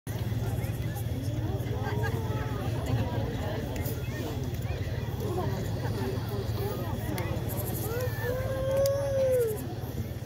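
Men and women in an outdoor crowd chatter close by.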